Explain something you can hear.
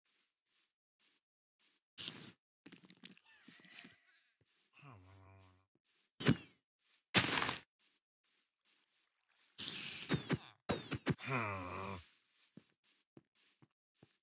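Footsteps patter softly and steadily on grass.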